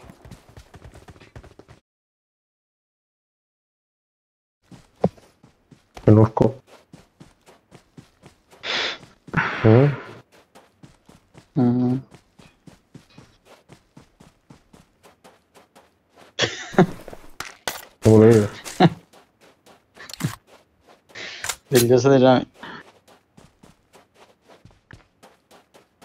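Footsteps patter quickly over dry dirt.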